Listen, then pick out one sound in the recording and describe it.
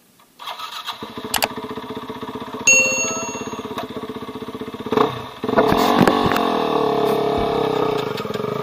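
A dirt bike engine idles and revs up close.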